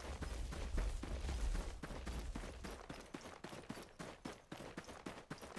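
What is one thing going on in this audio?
Horse hooves gallop quickly over soft ground.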